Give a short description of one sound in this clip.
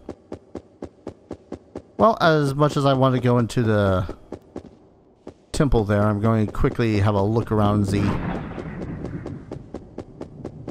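Quick, steady footsteps tap along.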